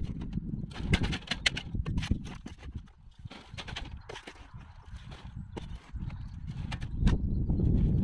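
A shovel tips soil onto a wire mesh sieve.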